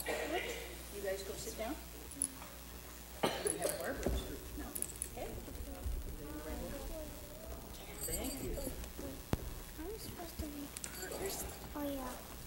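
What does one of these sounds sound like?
Children chatter and talk over one another in an echoing hall.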